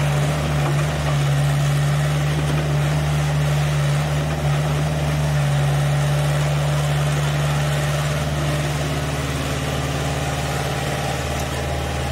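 An excavator's diesel engine drones steadily nearby.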